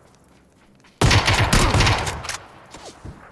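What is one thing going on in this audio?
Gunfire rattles in a rapid, loud burst.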